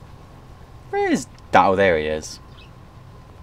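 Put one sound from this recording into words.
A man speaks a few loud, lively words close to a microphone.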